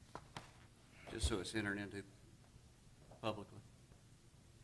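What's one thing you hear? A man speaks briefly through a microphone in a large room.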